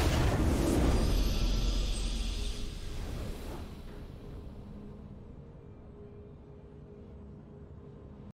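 A triumphant victory fanfare swells and slowly fades.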